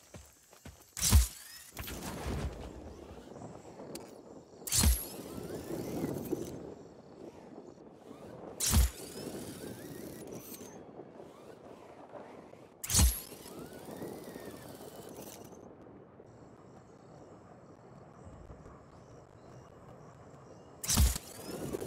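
A parachute snaps open with a loud whoosh, several times.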